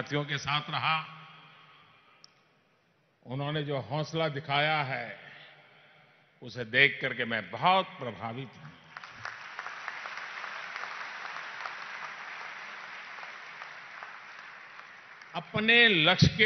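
An elderly man makes a speech through a microphone and loudspeakers, in emphatic phrases with pauses.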